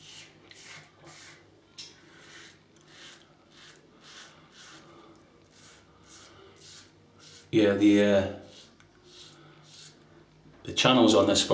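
A razor scrapes through stubble in short rasping strokes.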